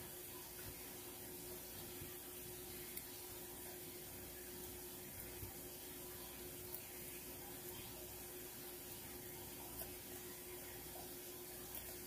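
A spatula scrapes thick food out of a metal can.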